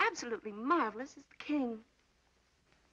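A woman speaks with animation into a telephone.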